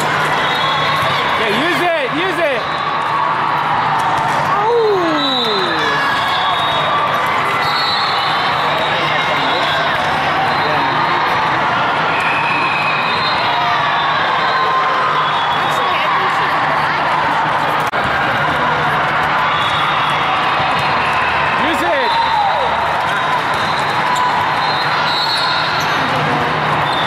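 Many voices chatter and shout in a large echoing hall.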